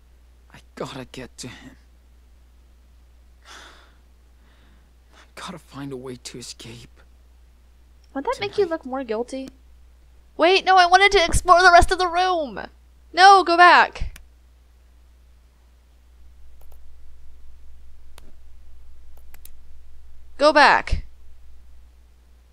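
A young woman talks and exclaims with animation into a close microphone.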